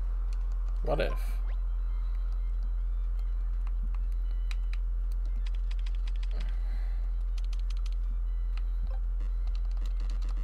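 Soft electronic blips sound as menu options change.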